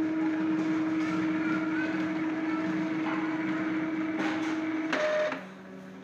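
A printer hums steadily.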